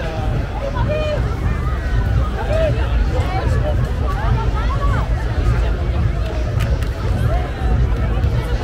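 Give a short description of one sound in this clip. A large crowd chatters and calls out all around outdoors.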